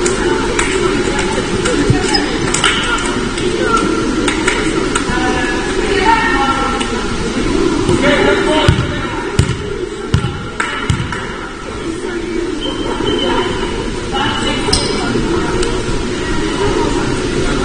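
Young women call out and chatter in a large echoing hall.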